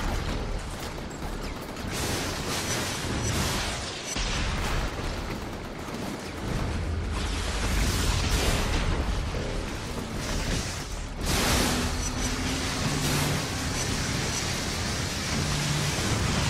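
Electric blasts crackle and zap in rapid bursts.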